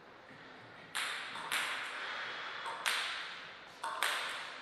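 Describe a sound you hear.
A ping-pong ball bounces on a paddle before a serve.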